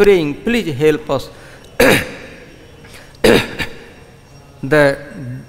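An elderly man speaks slowly and calmly through a microphone.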